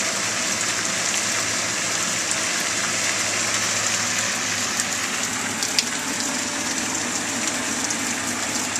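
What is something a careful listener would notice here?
Rain patters steadily all around, with drops tapping nearby.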